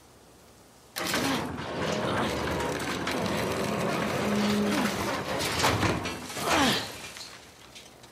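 A metal gate rattles and creaks as it is climbed.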